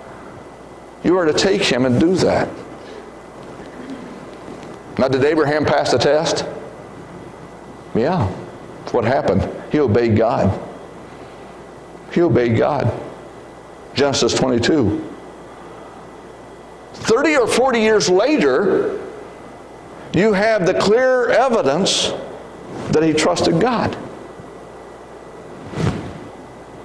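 A man speaks calmly in short phrases through a microphone in a large echoing hall.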